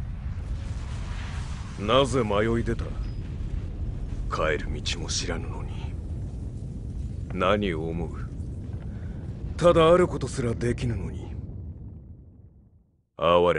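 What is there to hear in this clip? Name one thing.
A low rumbling roar fills the air.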